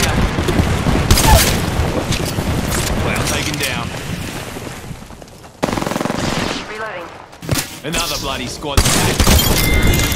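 A video game machine gun fires in bursts.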